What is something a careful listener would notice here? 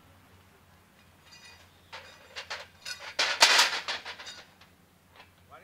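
A metal frame clatters and bangs as it is set down nearby.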